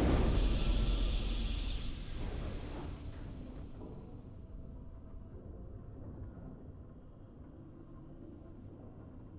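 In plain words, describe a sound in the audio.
A triumphant game fanfare swells loudly and then slowly fades away.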